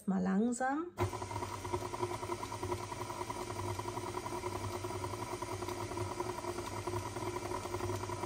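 A stand mixer motor hums steadily as it whirs.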